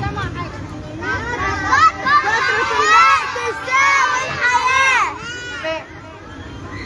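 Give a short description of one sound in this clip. Young girls shout and squeal excitedly nearby.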